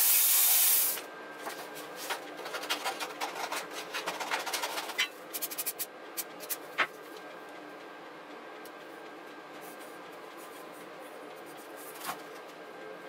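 Paper rustles and crinkles against a metal bar.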